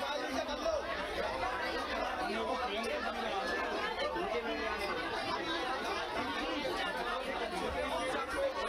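A crowd of women and children chatter close by.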